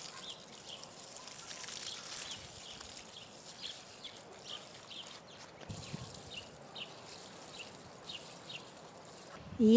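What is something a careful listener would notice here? Water pours from a watering can and splashes onto soil.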